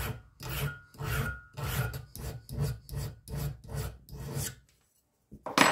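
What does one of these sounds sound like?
A metal file rasps back and forth over steel in quick, even strokes.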